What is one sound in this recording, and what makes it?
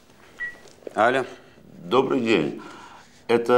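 A man speaks into a phone.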